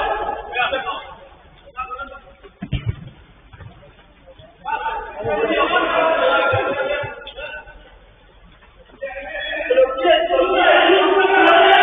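Men shout to each other across a pitch, some way off.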